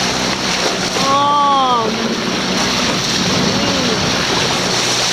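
A whale gives short calls that rise and fall in pitch.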